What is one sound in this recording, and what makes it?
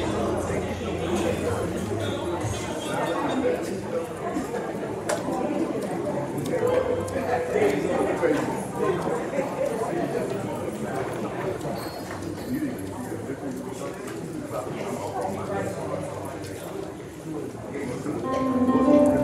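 A man speaks steadily through a loudspeaker in a large echoing hall.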